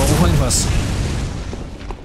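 Footsteps fall on stone paving.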